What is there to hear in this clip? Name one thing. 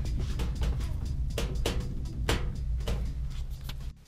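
A plastic panel creaks and clicks as a hand pries it up.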